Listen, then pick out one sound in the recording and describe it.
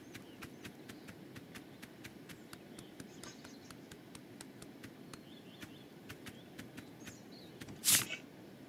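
Small feet patter quickly and steadily across the ground.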